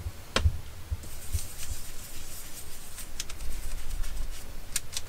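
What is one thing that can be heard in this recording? A foam tool rubs and scuffs across paper.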